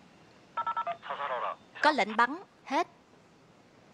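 A man's voice speaks urgently through a crackling two-way radio.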